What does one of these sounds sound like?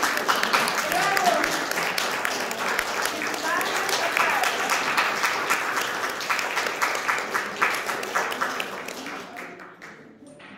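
People clap and applaud in an echoing room, and the applause fades.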